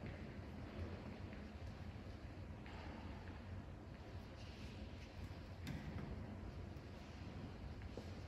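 Footsteps shuffle softly across a hard floor in a quiet, echoing hall.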